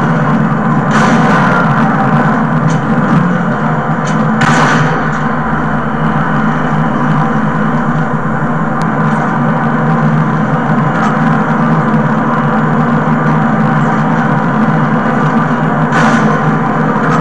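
Gunshots from a video game ring out through a television speaker.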